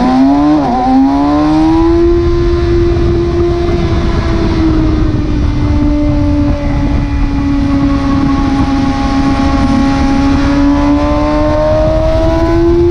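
A motorcycle engine roars at high revs, rising and falling in pitch.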